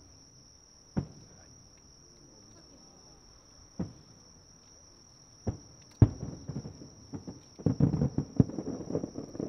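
Fireworks burst with deep booms far off.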